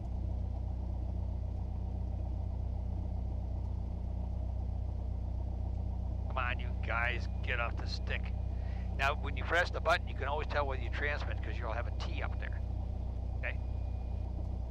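A small plane's engine drones steadily, heard through headsets.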